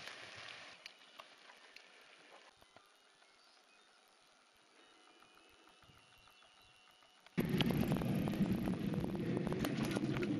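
Bicycle tyres crunch over a gravel track.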